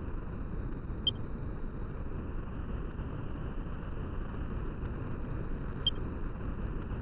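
A short electronic menu blip sounds twice.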